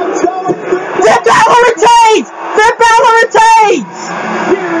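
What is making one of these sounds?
A young man sings out loudly and excitedly, close by.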